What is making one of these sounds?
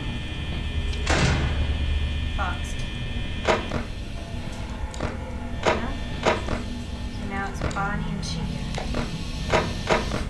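Two boys talk quietly close to a microphone.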